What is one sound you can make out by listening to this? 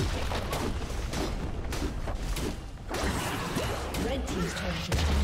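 Video game combat effects clash and crackle.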